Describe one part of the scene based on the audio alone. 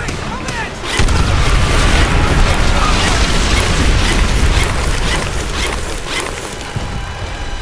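Explosions boom loudly with a deep rumble.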